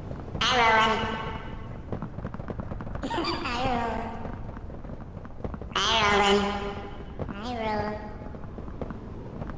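Footsteps tap on pavement at a steady pace.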